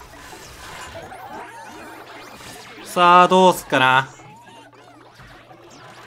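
Cartoon battle sound effects clash and chirp rapidly.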